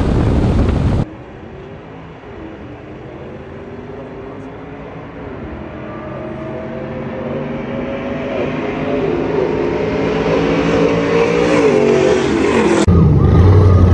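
A car engine revs in the distance and grows steadily louder as it approaches.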